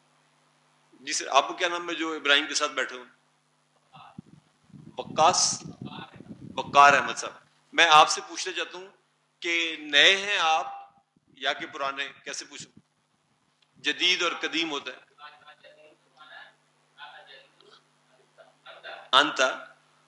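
An elderly man speaks calmly into a headset microphone.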